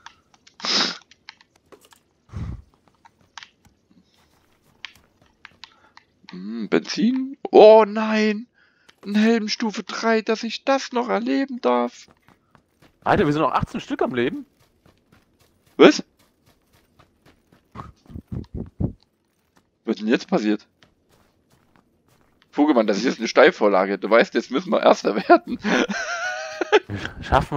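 Footsteps tread steadily over hard ground and snow.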